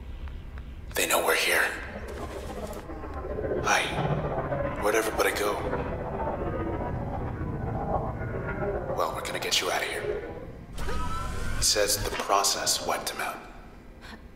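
Sharp electronic swooshes and zaps burst out in quick bursts.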